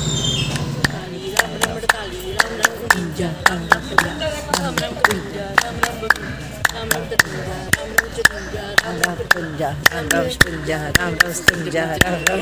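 Women chant together close by.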